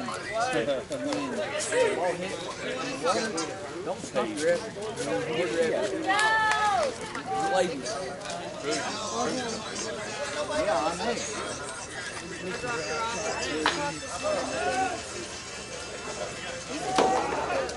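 Several players call out and chatter across an open field, heard from a distance.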